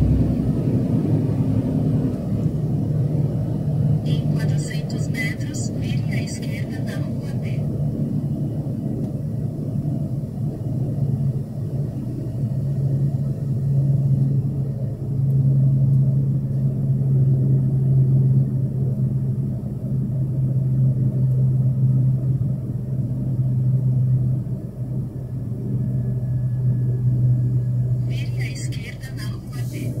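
A vehicle engine hums steadily as it drives along.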